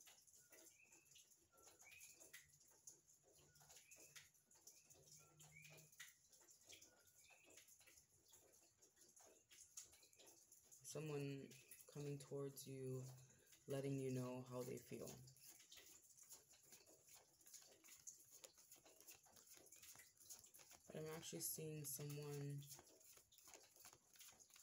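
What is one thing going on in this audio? Playing cards riffle and flutter as a deck is shuffled by hand.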